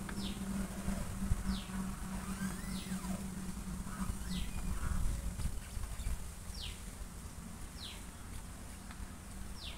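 A plastic cap clicks and scrapes as it is unscrewed from a chainsaw's tank.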